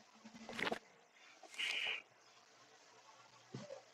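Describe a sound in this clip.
A playing card flips over with a short swish.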